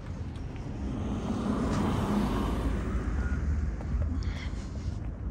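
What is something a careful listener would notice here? A car engine roars loudly as a car drives past.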